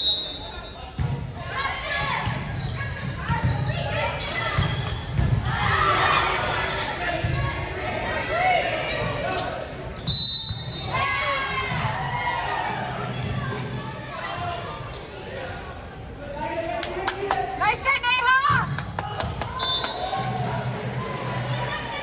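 Young women shout and cheer on the court.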